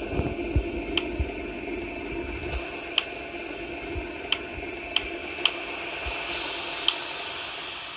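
Menu buttons click sharply several times.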